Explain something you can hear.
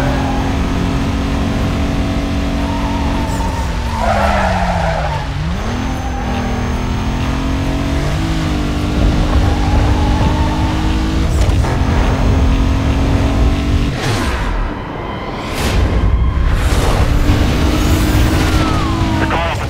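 Tyres hiss over a snowy road.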